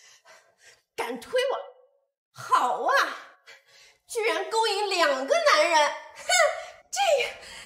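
A young woman speaks calmly up close.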